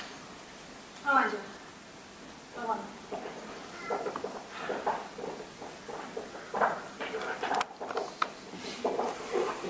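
A woman's voice calls out and speaks with drama, heard from a distance in a large hall.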